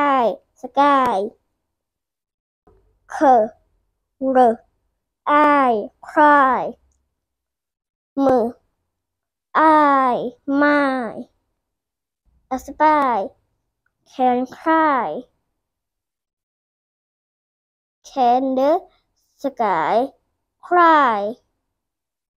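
A young boy reads words aloud slowly, close by, with pauses between words.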